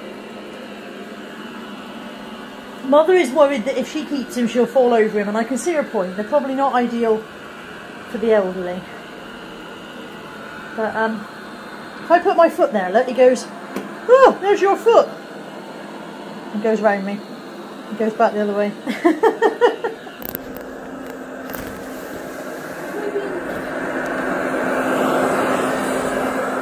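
A robot vacuum cleaner hums steadily and grows louder up close.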